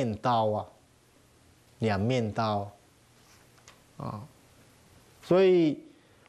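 A middle-aged man speaks slowly and calmly into a microphone, in short phrases with pauses.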